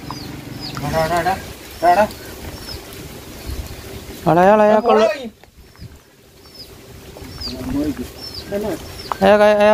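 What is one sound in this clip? A duck quacks nearby.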